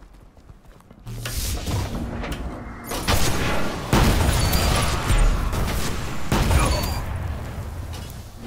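Gunfire blasts rapidly in bursts.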